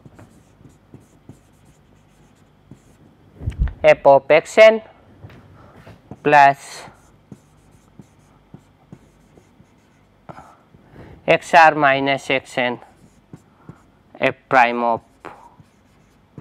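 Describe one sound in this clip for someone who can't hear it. A marker squeaks as it writes on a whiteboard.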